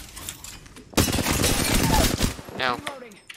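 Gunfire bursts loudly in rapid shots.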